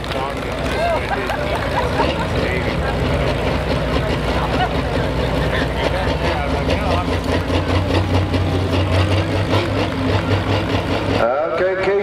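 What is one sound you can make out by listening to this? A tractor engine idles loudly with a deep rumble.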